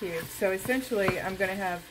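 A wooden spoon scrapes and stirs in a metal pot.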